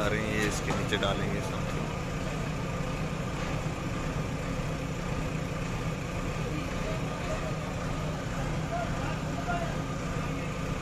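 A large diesel engine idles with a steady low rumble.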